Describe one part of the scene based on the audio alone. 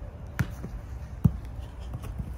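A soccer ball thuds sharply.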